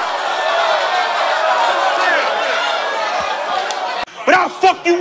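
A man raps loudly through a microphone.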